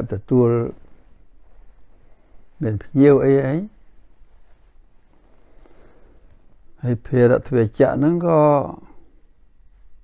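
An elderly man speaks slowly and calmly, close by, with long pauses.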